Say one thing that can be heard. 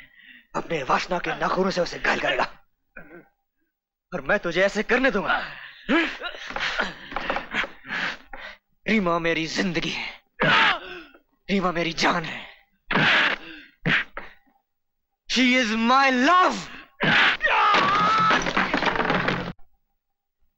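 A young man shouts angrily up close.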